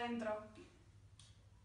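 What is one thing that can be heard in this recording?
A young woman talks on a phone.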